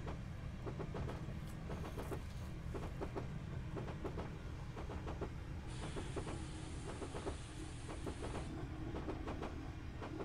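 Train wheels rumble low and steadily on the track.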